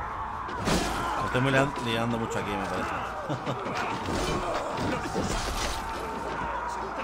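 Swords and shields clash in a fight.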